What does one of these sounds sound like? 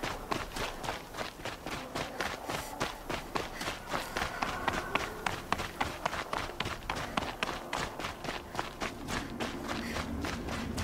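Footsteps run over snow-covered rocky ground.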